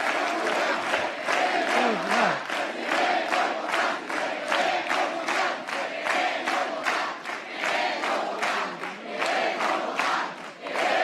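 A large crowd cheers and chants loudly in a big echoing hall.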